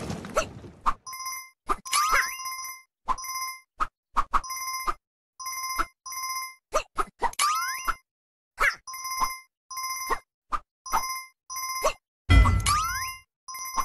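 Coins chime in quick bright bursts as a game character collects them.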